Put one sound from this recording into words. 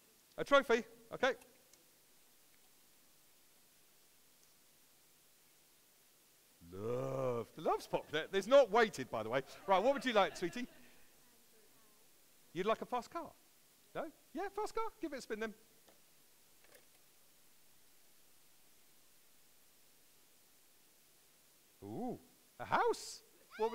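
A man speaks with animation in short bursts.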